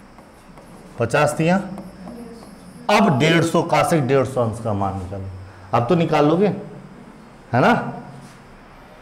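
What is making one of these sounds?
A young man speaks clearly into a close microphone, explaining.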